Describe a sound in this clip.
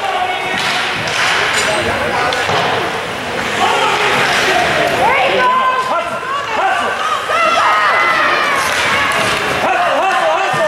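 Spectators nearby shout and cheer in a large echoing rink.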